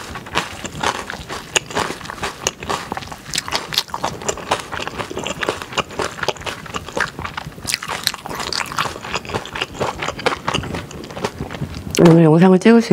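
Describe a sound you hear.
Sticky rice and vegetables squelch as a spoon mixes them close to a microphone.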